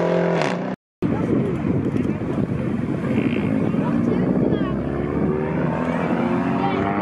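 Engines rumble at low revs as cars roll by.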